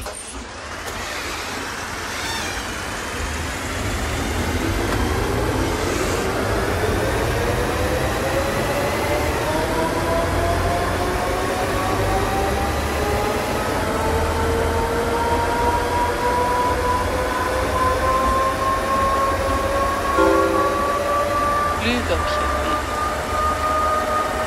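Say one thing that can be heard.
A bus engine hums and whines steadily higher as the bus speeds up.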